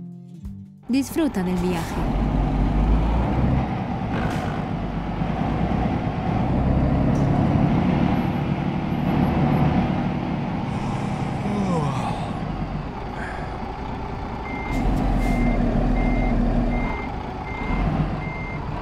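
A truck's diesel engine rumbles steadily up close.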